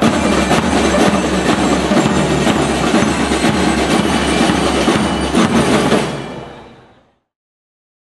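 A marching band plays drums loudly outdoors, then fades out.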